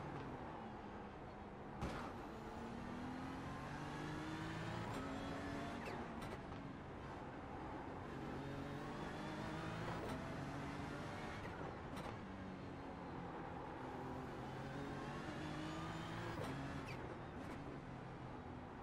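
A racing car engine roars, rising and falling in pitch as the car speeds up and shifts gears.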